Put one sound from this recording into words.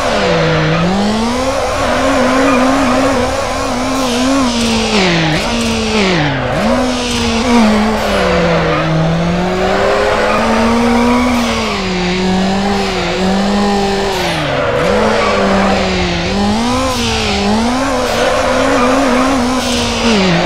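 A car engine revs up and down as the car drifts.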